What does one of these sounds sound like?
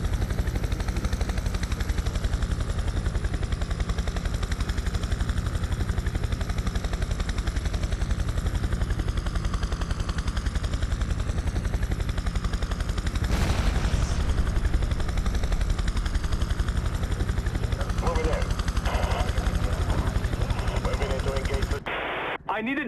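A helicopter's rotor thumps steadily and loudly close by.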